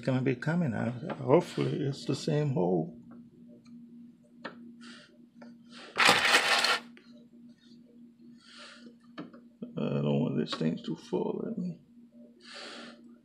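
A screwdriver scrapes and pries at plastic clips.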